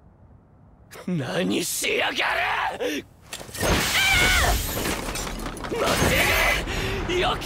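A young man shouts angrily and close by.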